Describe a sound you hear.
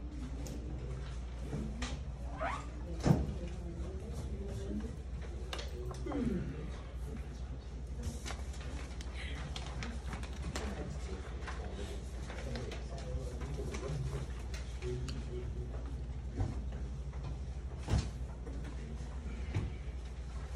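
Young people murmur and talk quietly in a room.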